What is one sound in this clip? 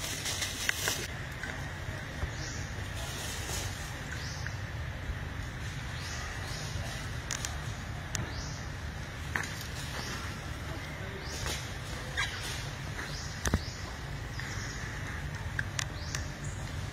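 Monkeys scuffle and tumble together on wooden boards.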